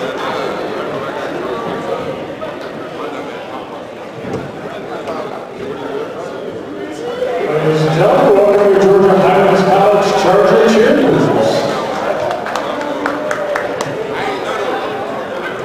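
A small crowd murmurs in a large echoing gym.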